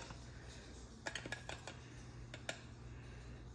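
A metal spoon clinks against a jar.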